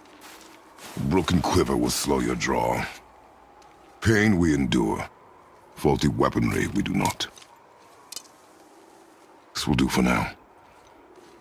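A man speaks in a deep, low voice.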